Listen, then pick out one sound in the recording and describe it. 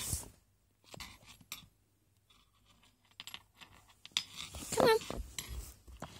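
A small animal's paws scrabble softly on a wooden floor.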